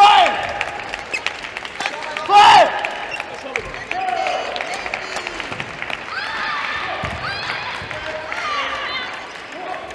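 Sports shoes squeak sharply on a hard court floor.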